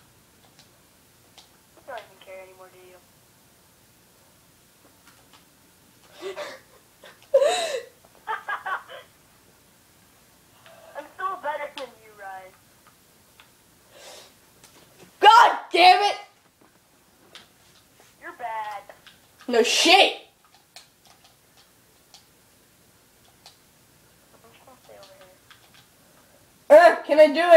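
Chirpy electronic game sound effects play from a television speaker.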